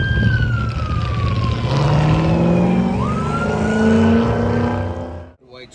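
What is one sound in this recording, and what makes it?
Car tyres screech on the pavement.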